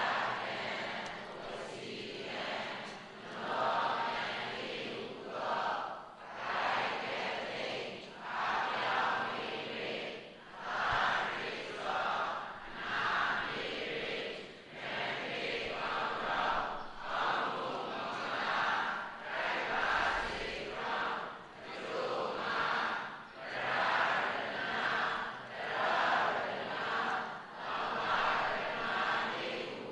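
An elderly man speaks steadily and calmly into a microphone.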